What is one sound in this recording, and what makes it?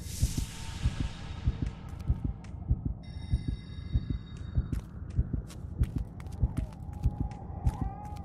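A character's footsteps thud steadily on stone.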